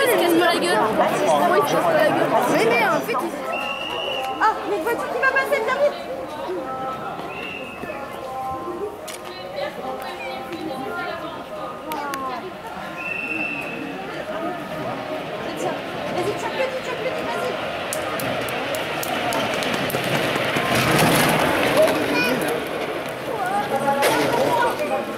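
A crowd of onlookers chatters nearby outdoors.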